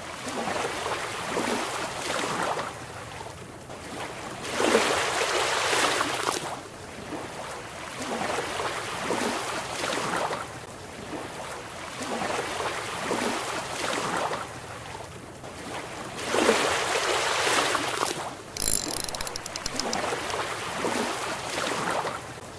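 Waves lap and wash gently against a small boat.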